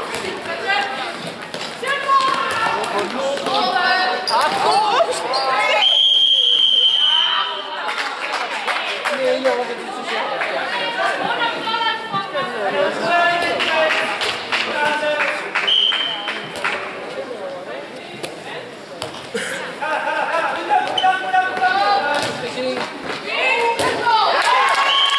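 A crowd of spectators chatters and shouts in a large echoing hall.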